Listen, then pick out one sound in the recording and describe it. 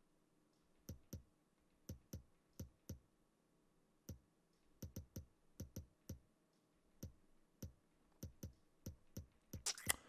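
Short menu clicks sound as a selection moves from item to item.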